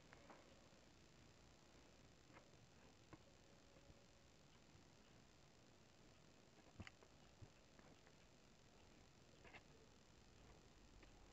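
Cord rustles and taps softly as hands tie knots.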